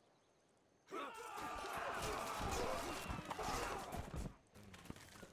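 A game battle sound effect plays.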